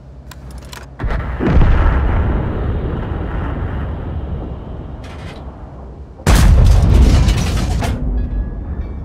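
A tank cannon fires with a loud, heavy boom that rolls away.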